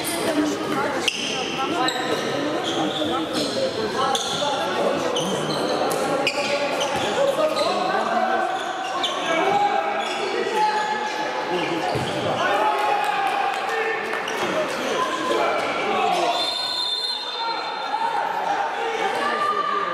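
Young men shout to one another across an echoing hall.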